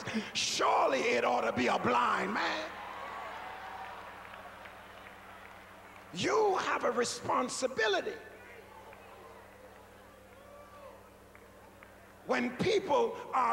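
A man preaches loudly and with animation into a microphone in a large echoing hall.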